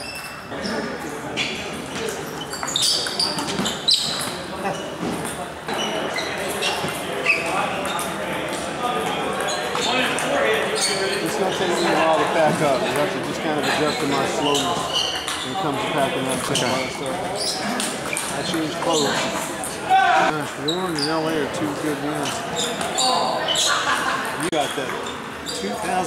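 A table tennis ball clicks back and forth off paddles and a table in a large echoing hall.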